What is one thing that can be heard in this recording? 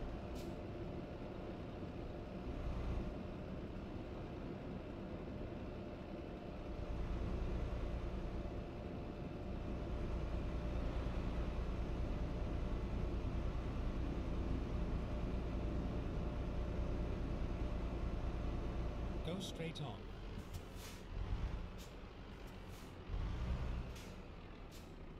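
A truck engine hums steadily, growing louder and then dropping away.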